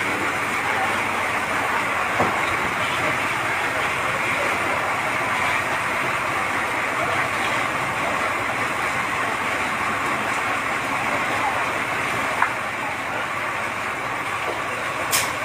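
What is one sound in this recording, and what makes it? Water from fire hoses sprays and hisses steadily.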